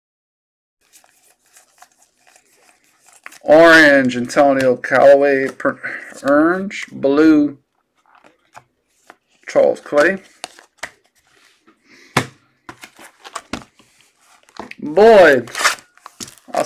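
Trading cards rustle and slide as they are shuffled by hand.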